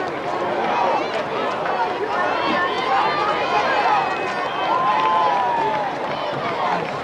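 Young men talk together in a huddle outdoors.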